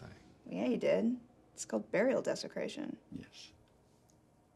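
A young woman speaks quietly and tensely up close.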